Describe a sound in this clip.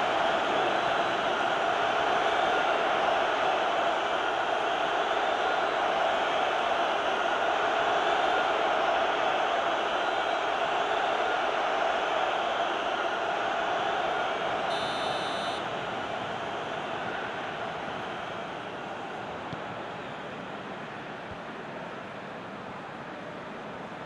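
A stadium crowd roars and cheers steadily, then slowly quietens.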